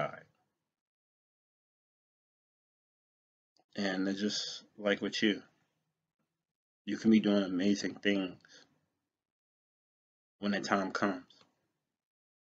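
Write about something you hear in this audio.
A man speaks calmly in short phrases close to a microphone, with pauses in between.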